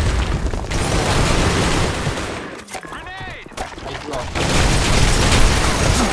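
Rapid gunfire bursts out in loud rattling volleys.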